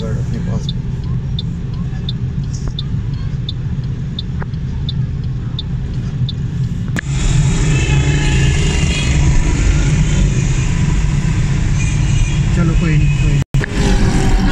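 Motorcycles rumble past in busy street traffic.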